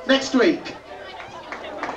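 A man shouts into a microphone over loudspeakers.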